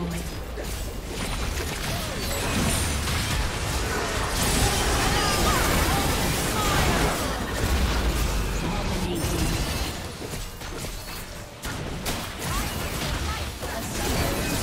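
Video game spell effects whoosh, crackle and clash in a busy battle.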